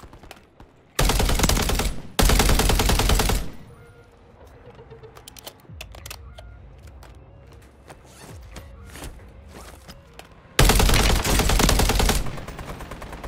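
Automatic rifle fire rattles in loud, rapid bursts.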